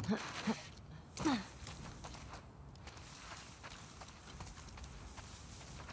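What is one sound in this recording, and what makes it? Footsteps swish through tall grass outdoors.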